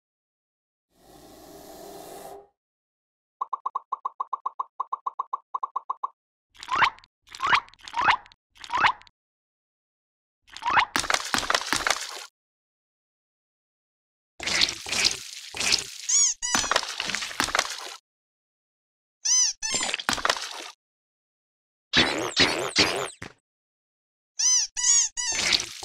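Short electronic game sound effects chime and pop in bursts.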